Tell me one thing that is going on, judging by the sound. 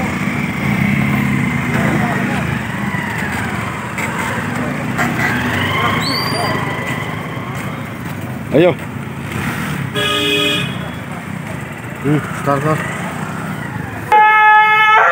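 A motorcycle engine idles and revs nearby.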